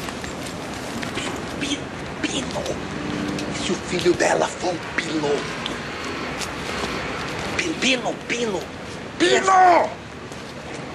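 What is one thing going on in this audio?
An older man speaks with animation, close by.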